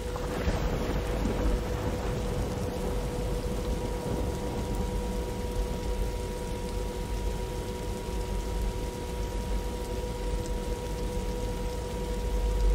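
Jet engines hum and whine steadily as an airliner rolls along.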